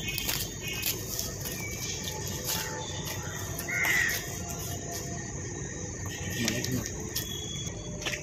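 Footsteps scuff on a gritty concrete floor outdoors.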